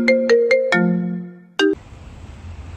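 A phone plays a short series of electronic beeps.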